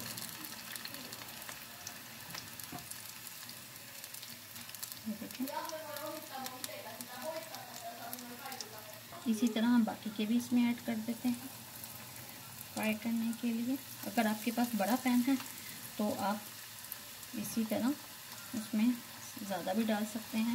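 Hot oil sizzles and crackles steadily in a pan.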